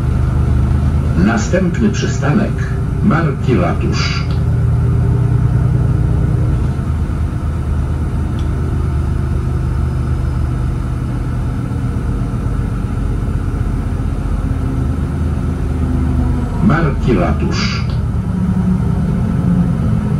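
A diesel city bus engine rumbles from inside the cabin while driving.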